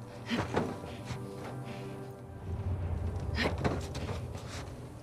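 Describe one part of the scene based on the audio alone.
A person scrambles over a metal box with a dull thud.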